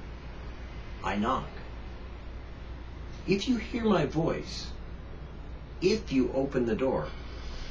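An elderly man reads aloud calmly from close by, in short phrases with pauses.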